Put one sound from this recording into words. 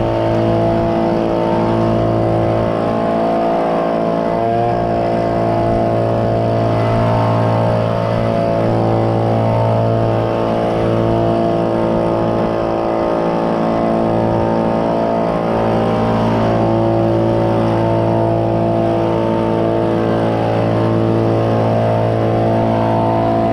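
A small drone's propellers whir steadily close by.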